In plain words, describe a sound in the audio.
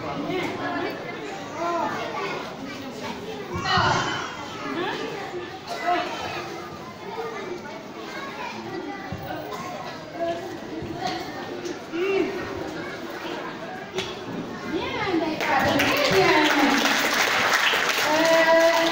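A crowd of children and adults chatter and call out in a large echoing hall.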